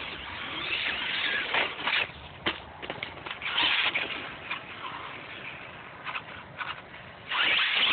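A small electric toy car whines as it drives fast across asphalt.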